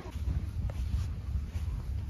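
Footsteps crunch softly on sand.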